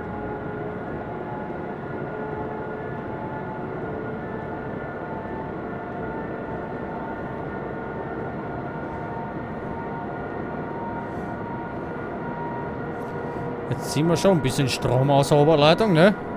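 A train rumbles steadily along the track with a low electric hum.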